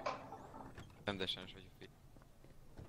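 A van door clanks open.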